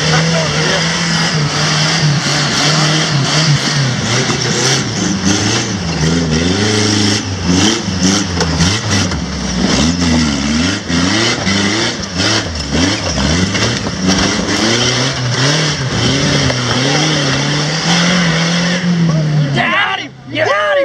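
An off-road vehicle's engine revs hard and roars up and down.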